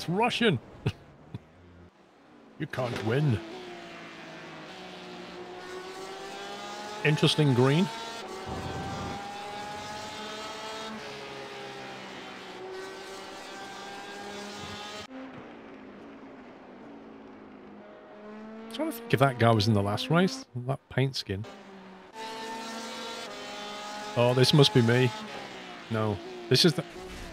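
A racing car engine roars and rises in pitch as it speeds up through the gears.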